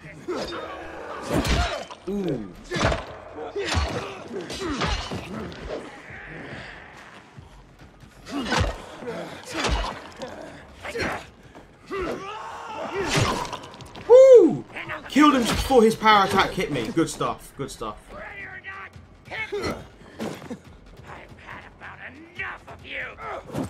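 Zombies growl and screech close by.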